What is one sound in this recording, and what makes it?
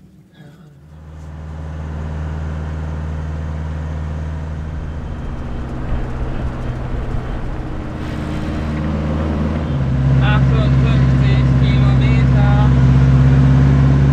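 A vehicle engine rumbles steadily while driving on a road.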